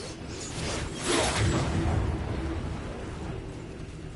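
Fire roars and crackles nearby.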